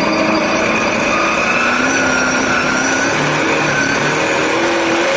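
A race car engine roars loudly at high revs, its pitch rising and falling.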